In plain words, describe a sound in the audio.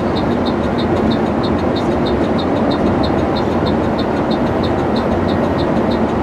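A vehicle's engine drones steadily as it drives.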